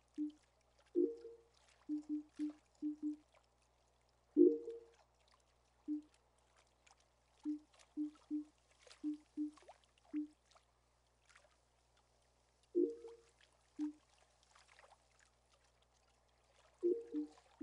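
Deeper chimes sound as menu choices are confirmed.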